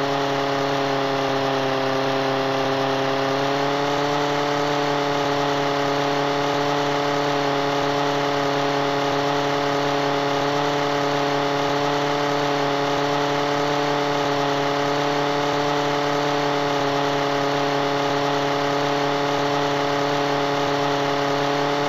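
A propeller plane's engine drones steadily, its pitch rising slightly early on.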